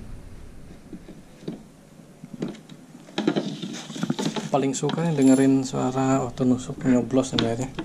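Wooden chair parts knock and rattle.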